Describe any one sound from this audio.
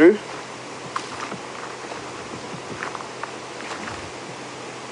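Footsteps crunch on dry ground and twigs.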